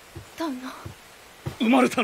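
A woman calls out softly.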